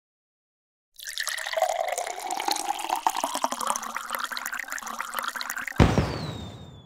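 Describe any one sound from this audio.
Liquid gushes and splashes steadily.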